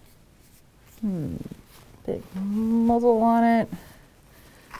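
A woman speaks briefly close to a microphone.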